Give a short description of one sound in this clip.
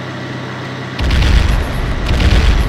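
Loud explosions boom below a plane.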